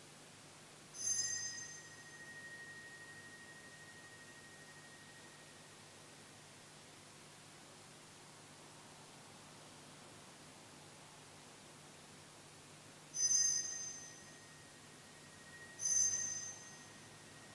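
A small handbell rings brightly several times, each ring lingering and fading.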